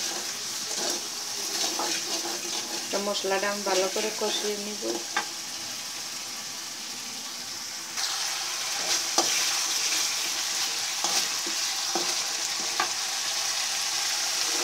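A spatula scrapes and taps against a metal pan.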